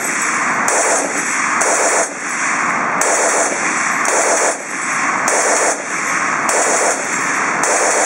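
A machine gun fires in rapid bursts outdoors.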